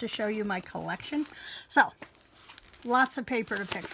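Stiff paper rustles as it is handled.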